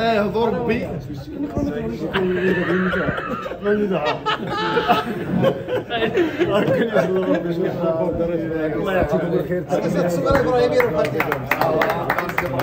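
An older man speaks into a handheld microphone close by.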